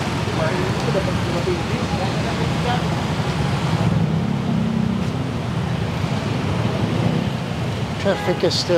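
A diesel city bus rumbles in slow, congested traffic.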